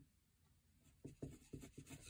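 A pen writes on paper.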